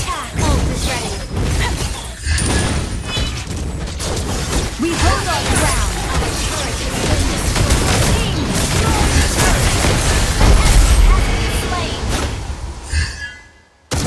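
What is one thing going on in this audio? Magic blasts and impacts crackle and boom in quick succession.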